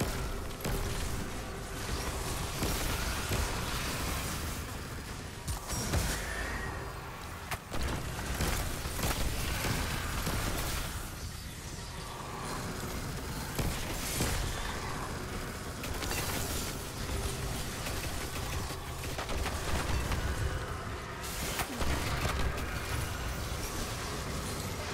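Gunfire cracks and booms in rapid bursts.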